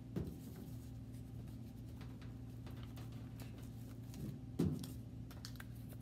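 Paper filters rustle and crinkle.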